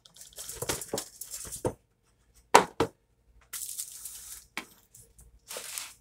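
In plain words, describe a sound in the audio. A cardboard box is picked up and set down on a counter with a light thump.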